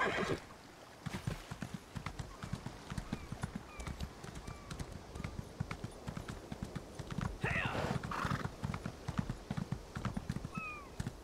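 A horse's hooves pound steadily at a gallop.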